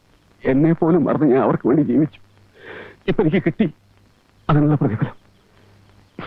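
An elderly man speaks in a strained, emotional voice close by.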